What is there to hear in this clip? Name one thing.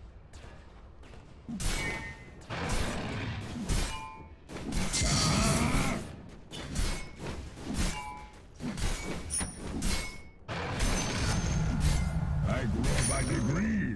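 Fantasy battle sound effects of spells and weapon hits clash.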